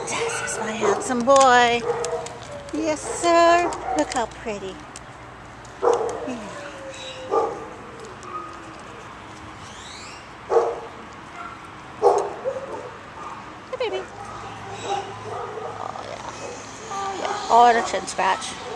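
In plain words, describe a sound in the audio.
A dog whines in high, wavering cries up close.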